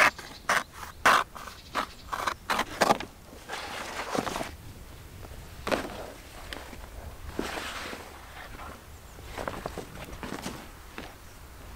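Stiff leather rustles and flaps as it is handled.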